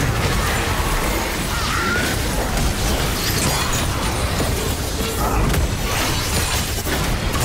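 Game spell effects and attacks crackle and boom in a fight.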